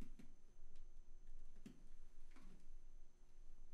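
Footsteps approach slowly on a hard floor.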